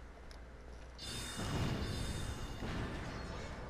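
A magic blast bursts with a rushing whoosh.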